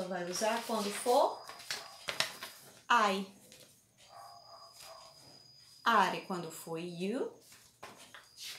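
Paper rustles as a card is handled.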